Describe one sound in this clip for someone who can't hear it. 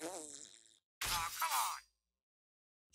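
A weapon strikes with a loud magical burst.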